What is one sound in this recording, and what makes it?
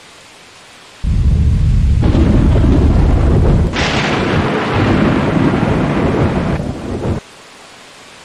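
Heavy rain pours down with a deep roar.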